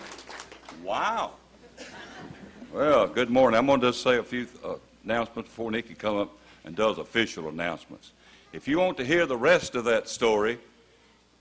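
An elderly man speaks calmly into a microphone, amplified in a large hall.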